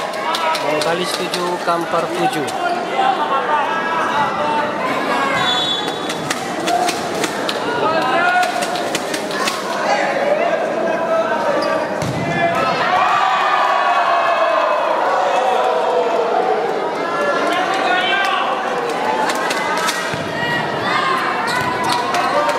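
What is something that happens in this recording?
A large crowd cheers and shouts in an echoing indoor hall.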